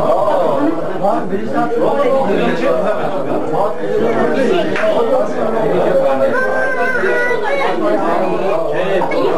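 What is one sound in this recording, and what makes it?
A crowd of men talk loudly over one another nearby.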